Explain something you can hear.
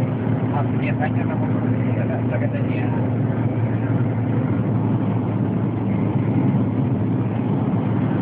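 Tyres roar steadily on the road.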